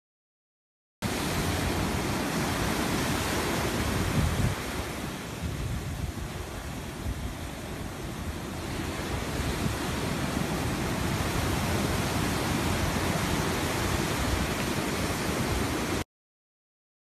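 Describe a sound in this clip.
Ocean waves break and wash onto a beach.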